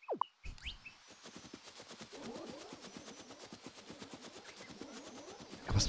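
Quick footsteps patter on grass in a game.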